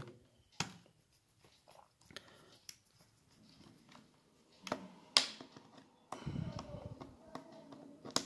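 A screwdriver clicks and scrapes against screws in a plastic case.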